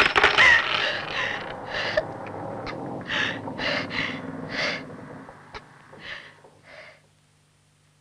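A young boy sobs and whimpers close by.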